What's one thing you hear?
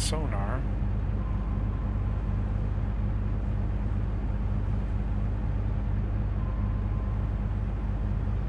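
Waves wash against a boat's hull.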